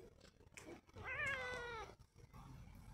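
A cat meows once, close by.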